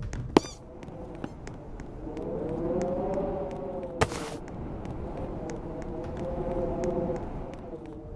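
Light footsteps tap quickly and steadily on wooden planks.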